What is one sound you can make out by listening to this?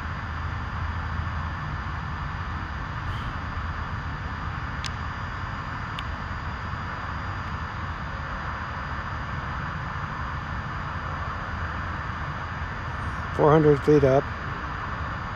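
Traffic rushes along a busy highway in a steady, distant roar.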